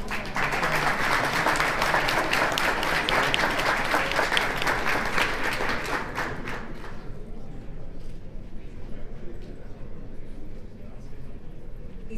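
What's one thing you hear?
A young woman speaks calmly into a microphone through loudspeakers in a large hall.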